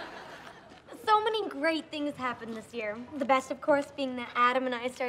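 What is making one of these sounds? A young woman speaks cheerfully.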